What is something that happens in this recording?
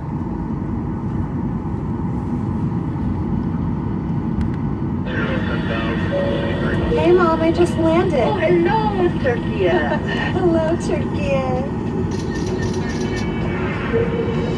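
A jet engine hums steadily with a low rumble as the plane taxis.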